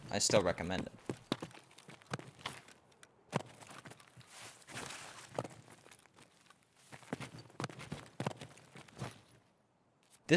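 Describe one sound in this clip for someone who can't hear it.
Gear clicks and rustles as someone climbs and moves about.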